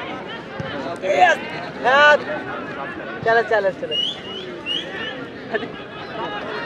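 Young men shout loudly and excitedly nearby.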